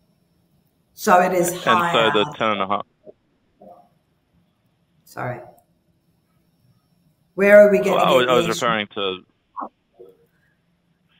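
An older woman speaks calmly over an online call, in short bursts with pauses.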